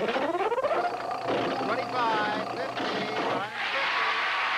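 Electronic game board tones ring out in quick rising notes.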